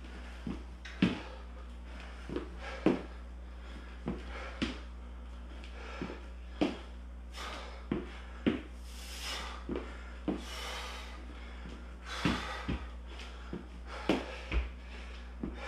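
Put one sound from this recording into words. Footsteps thud on a wooden floor.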